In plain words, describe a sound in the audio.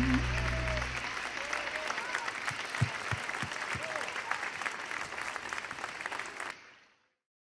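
A large crowd applauds and cheers outdoors.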